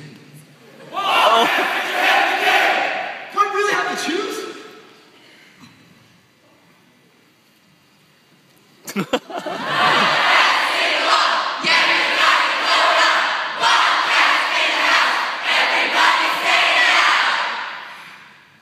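A crowd of young people cheers and shouts loudly.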